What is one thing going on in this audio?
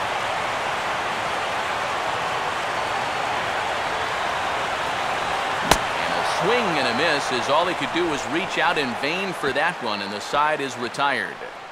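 A crowd roars and cheers in a large stadium.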